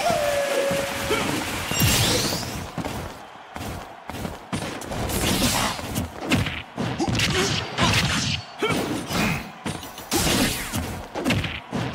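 Video game fighters clash with punchy hits and whooshes.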